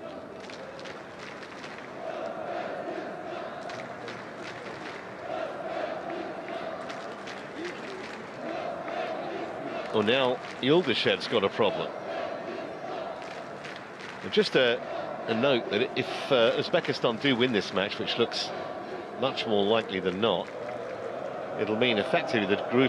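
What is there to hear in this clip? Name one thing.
A stadium crowd chants and cheers in the distance.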